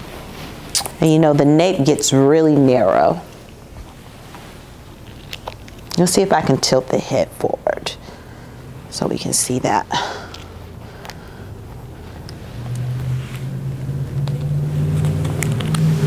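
A young woman talks calmly, heard close up.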